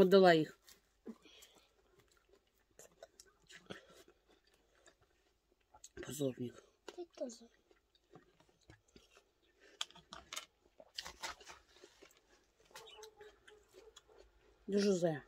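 A young woman chews juicy watermelon with soft crunching.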